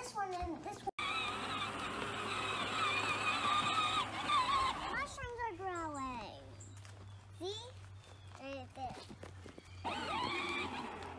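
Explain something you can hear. A toy tractor's electric motor whirs steadily outdoors.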